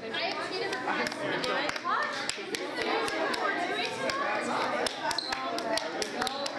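A crowd of young people chatter loudly in a large echoing room.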